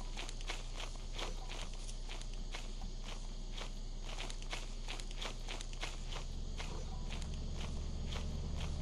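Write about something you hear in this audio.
Footsteps crunch steadily over forest ground.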